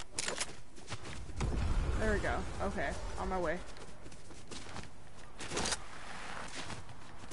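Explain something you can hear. Quick footsteps rustle through grass.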